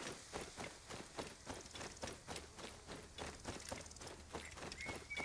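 Footsteps swish quickly through dry grass.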